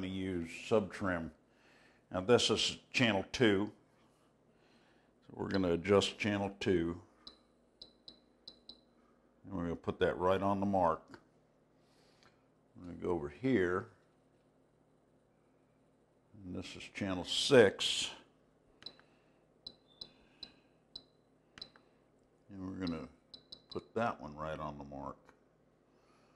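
An elderly man talks calmly nearby, in short bursts with pauses.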